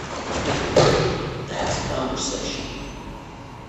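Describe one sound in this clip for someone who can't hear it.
A body thuds and rolls on a padded mat.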